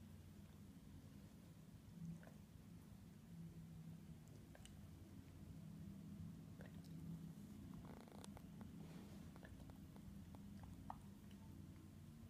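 A dog licks and nibbles at its leg with soft wet smacks.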